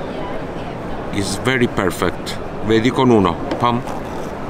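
A knife slices through a juicy orange on a wooden board.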